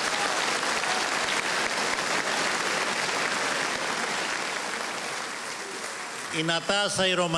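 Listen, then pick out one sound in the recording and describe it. A crowd applauds and cheers in a large hall.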